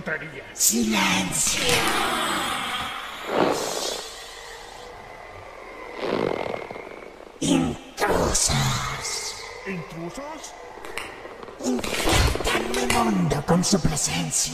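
A man sings and shouts in a harsh, strained voice.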